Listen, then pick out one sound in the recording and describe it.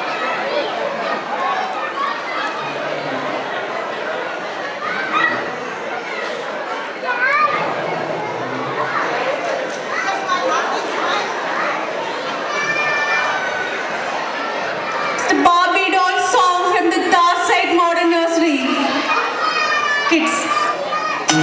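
An audience of adults and children chatters and murmurs in the background.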